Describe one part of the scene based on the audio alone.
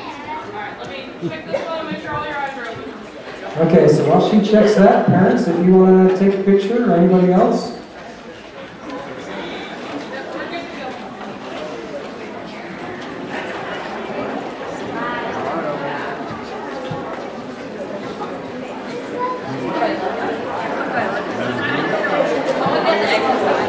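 An audience murmurs and chatters in the background.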